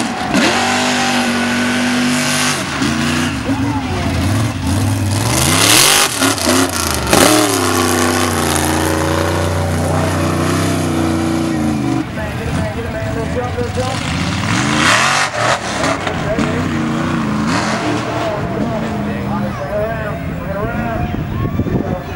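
A big off-road truck engine roars and revs hard, close by.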